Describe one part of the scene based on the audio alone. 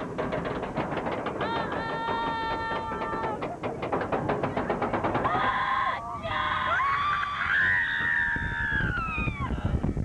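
A roller coaster train rattles along its track.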